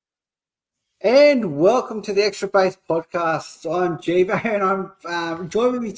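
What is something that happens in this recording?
A middle-aged man speaks with animation over an online call.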